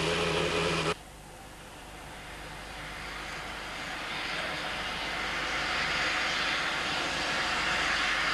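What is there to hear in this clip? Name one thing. Steam hisses from a locomotive, growing louder.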